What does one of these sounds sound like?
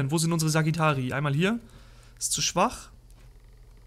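A young man speaks with animation close to a microphone.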